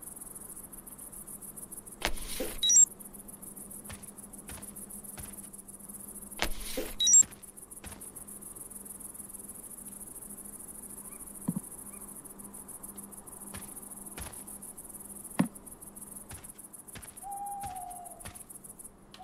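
Footsteps tread slowly over rough ground.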